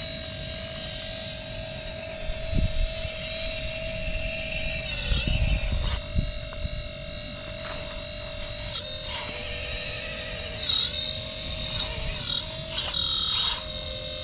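A small electric motor whines steadily as a toy excavator moves.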